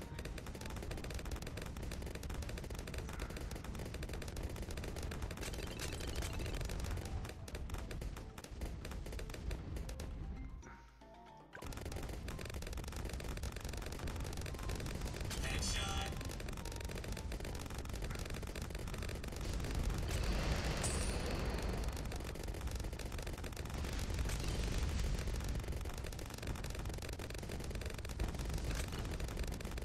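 Game explosions boom and pop rapidly.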